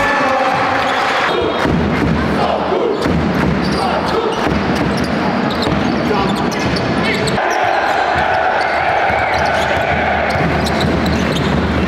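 Drums pound steadily in the crowd.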